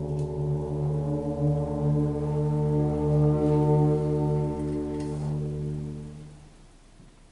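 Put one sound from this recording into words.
A concert band holds a long, sustained chord that fades away in a large hall.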